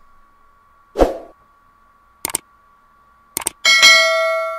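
A mouse button clicks several times.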